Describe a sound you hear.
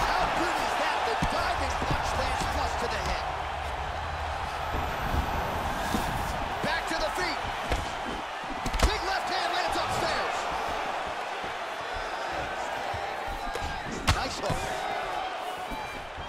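Punches thud against bodies in a fight.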